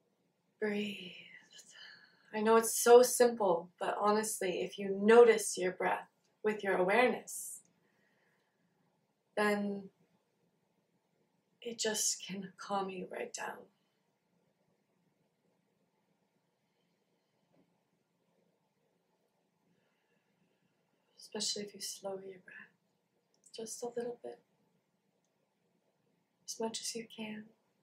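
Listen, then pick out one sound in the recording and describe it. A young woman speaks calmly and close to a microphone, with pauses.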